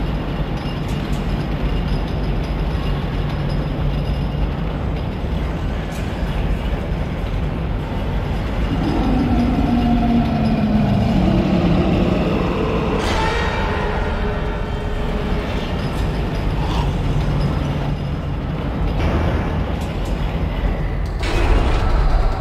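A heavy lift platform rumbles and hums steadily as it moves.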